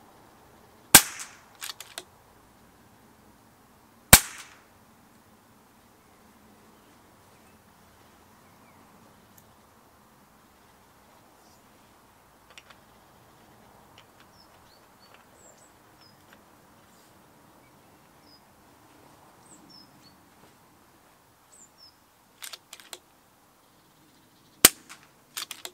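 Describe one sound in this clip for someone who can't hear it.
An air rifle fires with a sharp crack outdoors.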